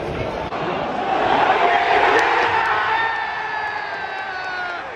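A crowd roars and cheers loudly.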